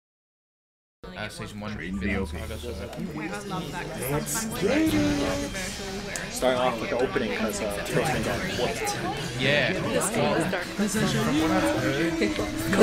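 Several men and women talk and react excitedly through microphones.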